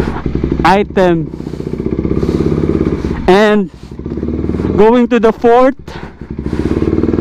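A motorcycle engine idles with a steady, rapid throb.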